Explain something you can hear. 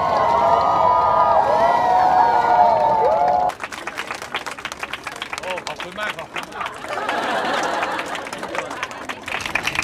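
A crowd of men and women cheers and shouts excitedly.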